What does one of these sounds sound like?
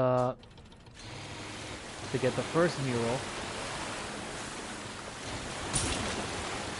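A small boat's motor chugs through splashing water.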